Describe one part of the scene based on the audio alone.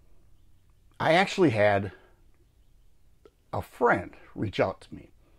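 An elderly man speaks calmly and close to a microphone, in short bursts.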